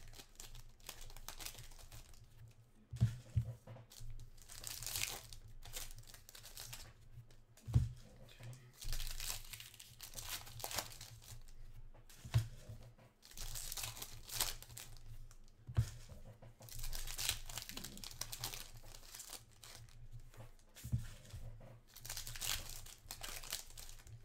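Plastic card sleeves crinkle and rustle as hands handle them.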